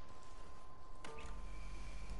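A button clicks.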